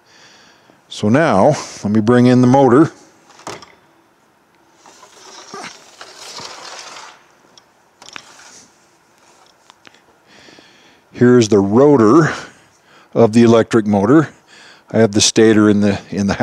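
A middle-aged man speaks calmly and with animation into a close headset microphone.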